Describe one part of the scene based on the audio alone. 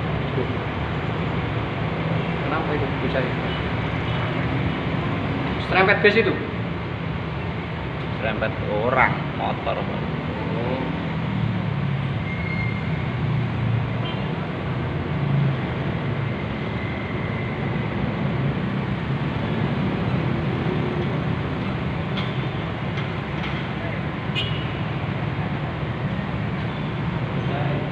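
Steady traffic rumbles past outside, heard through a window.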